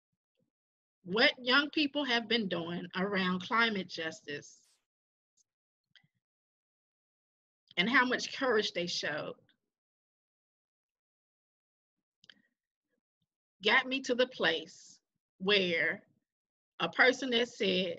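A woman speaks calmly over an online call, in bursts with pauses.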